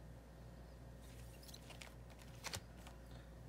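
A hand brushes against a plastic sleeve with a soft rustle.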